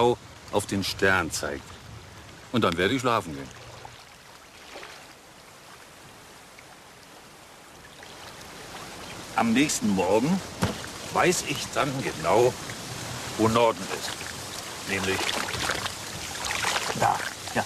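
An elderly man speaks with animation, close by.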